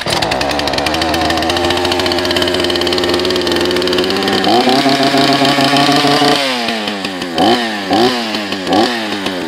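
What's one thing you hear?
A chainsaw engine runs loudly close by and revs up in sharp bursts.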